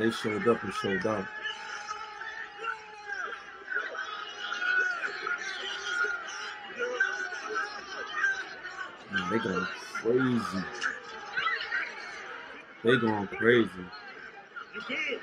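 A crowd of people talk and shout outdoors.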